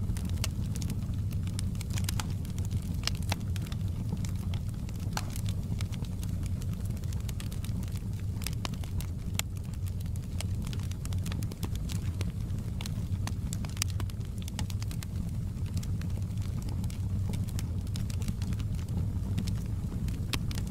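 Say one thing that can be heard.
Logs crackle and pop in a fire.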